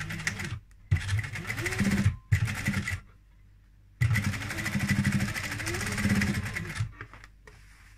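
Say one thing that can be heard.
A sewing machine whirs in quick bursts as it stitches fabric.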